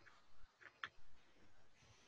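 A hand rubs and brushes over paper.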